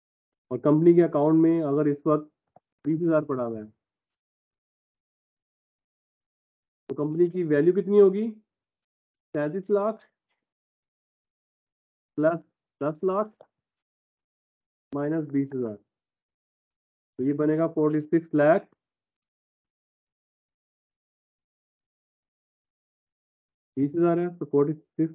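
A man explains calmly through a microphone in an online call, in short bursts with pauses.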